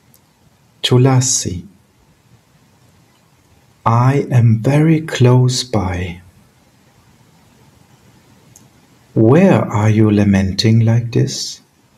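A middle-aged man speaks calmly in bursts over an online call.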